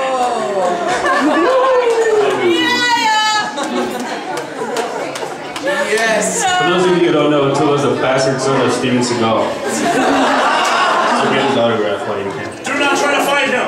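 A crowd cheers and shouts in a noisy room.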